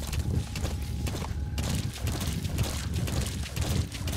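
Water splashes under a horse's hooves.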